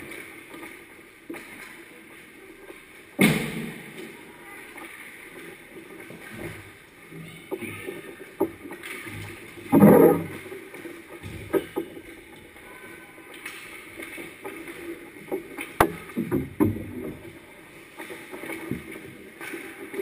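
Ice skates scrape and swish across the ice in a large echoing rink.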